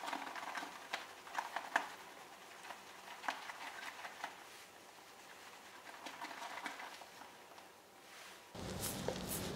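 A shaving brush swirls and whips lather in a bowl.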